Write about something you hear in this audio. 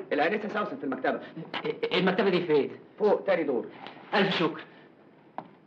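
A man speaks loudly and agitatedly, close by.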